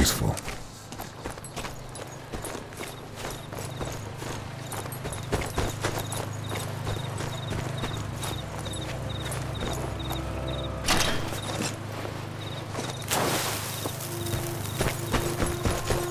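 Footsteps crunch over dirt and leaves at a steady pace.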